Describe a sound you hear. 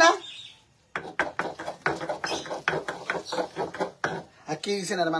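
A stone pestle grinds and knocks in a stone mortar.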